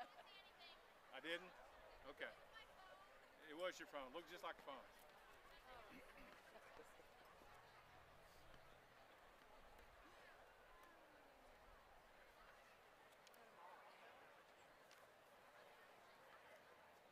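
A crowd of men and women murmurs and chats quietly outdoors.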